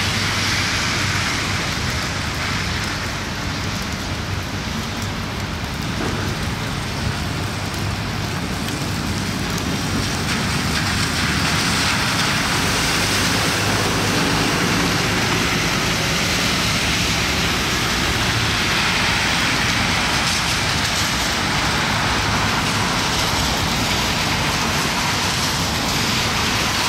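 A bus engine rumbles as the bus drives past.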